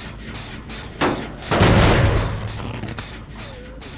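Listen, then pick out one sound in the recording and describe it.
A metal machine clanks and rattles as it is struck.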